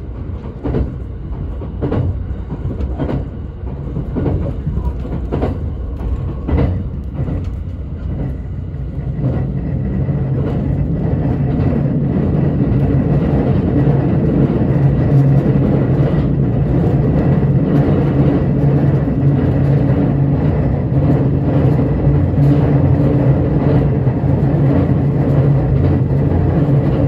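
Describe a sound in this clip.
A train rumbles along the tracks, its low hum growing steadily louder.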